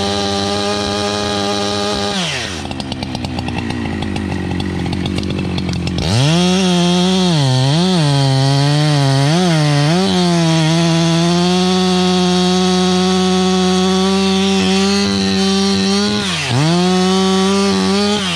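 A chainsaw engine runs loudly, dropping to a rough idle and then revving up again.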